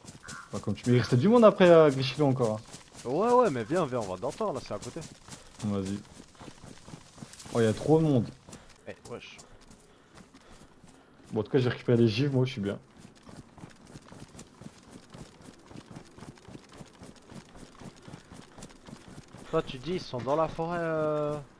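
Footsteps rustle steadily through tall grass.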